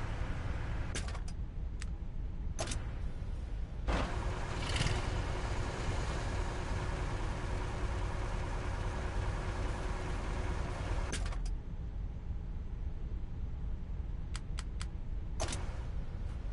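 Short electronic clicks sound as game menus change.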